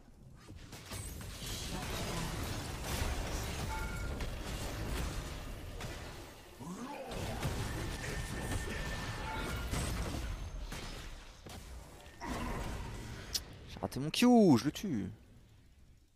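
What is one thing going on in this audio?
Video game spell and combat effects crackle and whoosh.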